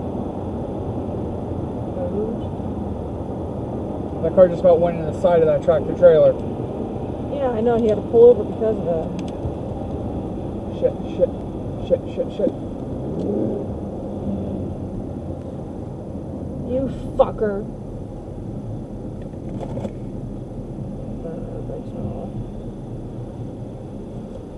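Road noise rumbles steadily from inside a car on a highway.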